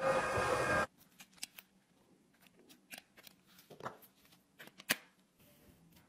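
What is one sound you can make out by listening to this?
Tweezers click and tap against a plastic case.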